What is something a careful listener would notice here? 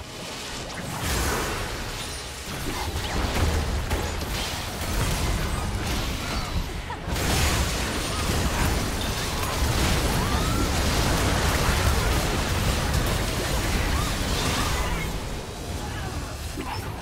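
Game spell effects whoosh and crash in a busy battle.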